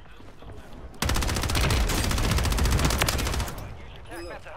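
Automatic gunfire rattles in rapid bursts close by.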